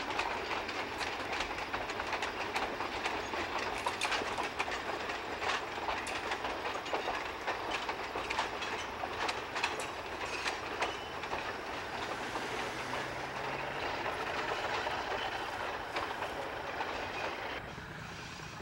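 Passenger cars and a caboose roll past on the rails, wheels clicking.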